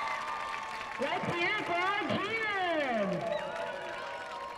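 A group of young women whoop and scream excitedly.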